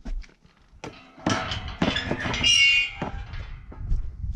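A metal gate creaks as it swings open.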